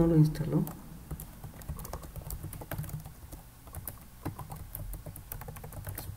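Keys clack as someone types on a keyboard.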